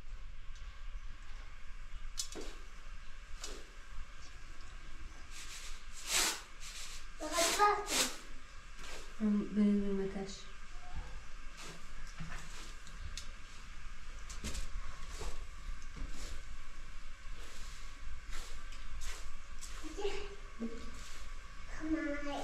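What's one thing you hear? Dry rice grains rustle and patter on a metal tray.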